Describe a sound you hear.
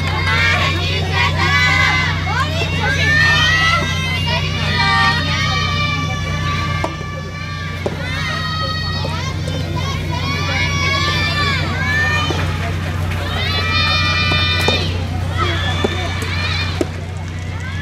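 A tennis ball is struck with a racket in sharp pops.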